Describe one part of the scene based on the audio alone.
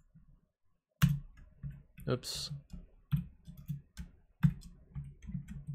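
Keyboard keys click and tap.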